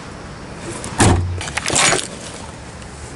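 A car door clunks open.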